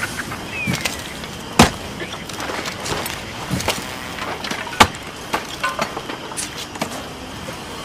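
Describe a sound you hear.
A knife chops through meat on a wooden board with sharp knocks.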